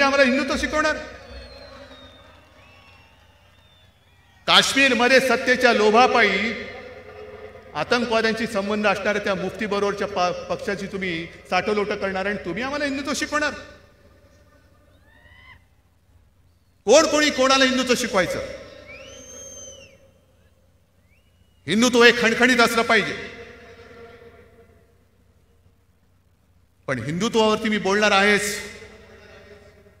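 A man speaks forcefully into a microphone over loudspeakers, in bursts with pauses, echoing outdoors.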